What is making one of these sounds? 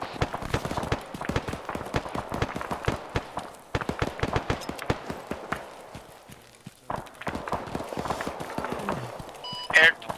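Rapid gunfire rattles in bursts, with some shots close and others farther off.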